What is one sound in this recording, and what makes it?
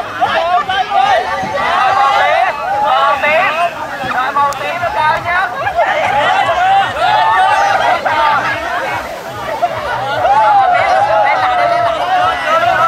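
A crowd of young people cheers and shouts excitedly outdoors.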